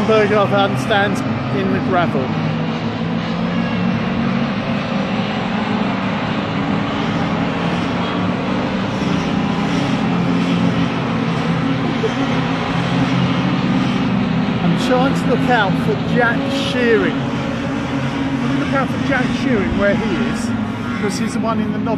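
Small racing car engines roar past one after another, rising and falling in pitch.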